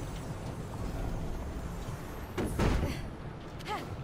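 A heavy wooden crate thuds down onto stone.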